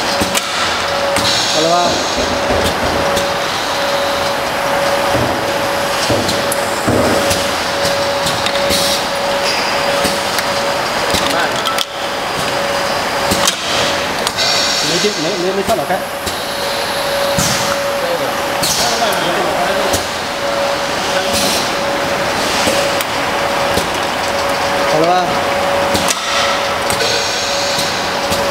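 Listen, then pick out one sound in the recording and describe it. Glass jars clink against each other on a moving conveyor.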